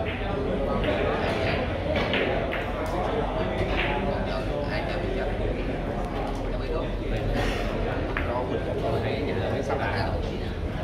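Several men talk and murmur in the background.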